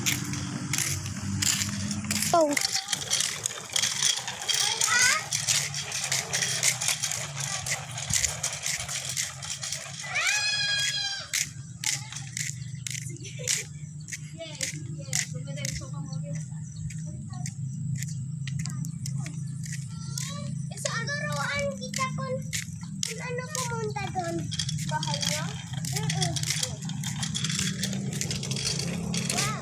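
Small bicycle tyres roll over concrete.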